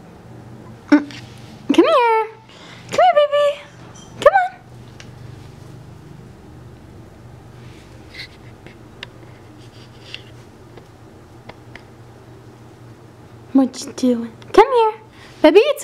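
A puppy yips and whines in high, rising cries.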